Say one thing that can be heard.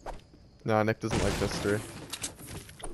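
A pickaxe smashes into a wooden crate.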